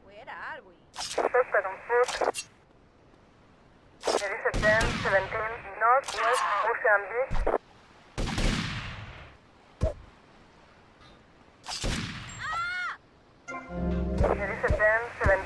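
Blows thud as a man is struck in a street fight.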